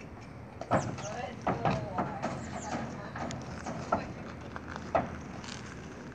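A horse's hooves thud and clatter on a trailer floor.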